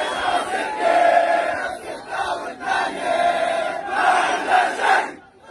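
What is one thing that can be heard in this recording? A large crowd chants and sings loudly outdoors.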